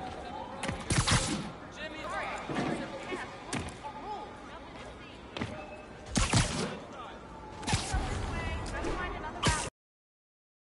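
Sharp whooshes rush past now and then.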